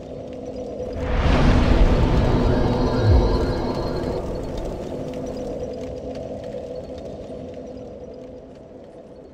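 A fire flares up with a loud whoosh and then roars steadily.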